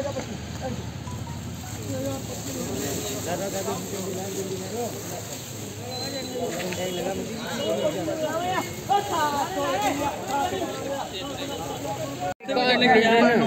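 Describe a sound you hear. A crowd of men talks loudly outdoors all at once.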